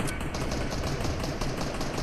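A sniper rifle fires a single shot.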